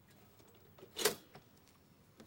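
A toaster lever clicks down.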